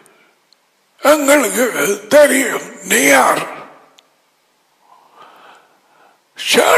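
An elderly man speaks emphatically into a close headset microphone.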